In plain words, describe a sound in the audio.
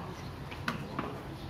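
A wooden bat strikes a cricket ball with a sharp crack.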